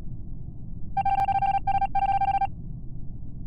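A game tone beeps in short rapid bursts.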